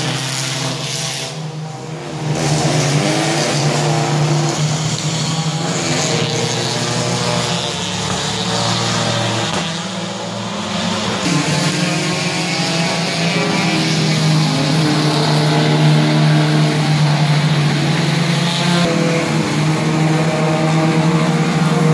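A racing car engine roars loudly at high revs as the car speeds past.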